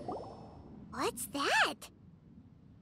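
A girl exclaims in surprise.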